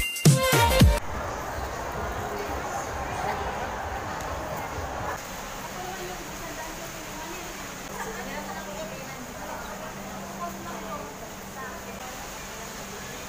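A young woman talks calmly close to a microphone.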